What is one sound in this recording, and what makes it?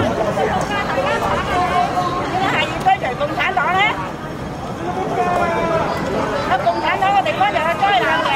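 A crowd of men and women chatter and call out nearby, outdoors.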